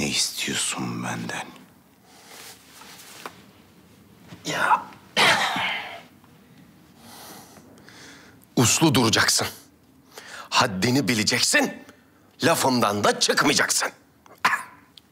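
Men talk in turn, close by.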